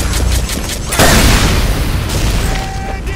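A loud blast bursts close by.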